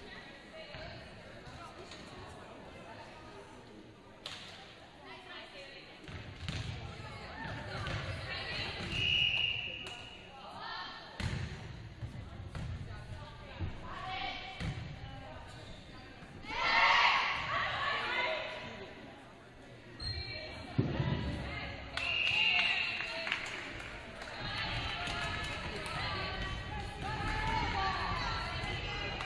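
Volleyball players shout and call to each other in an echoing gym.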